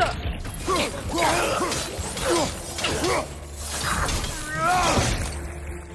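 Blades clash and slash in a fight.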